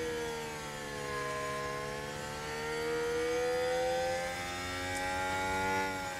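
A racing car engine whines at high revs, its pitch dipping and then slowly rising.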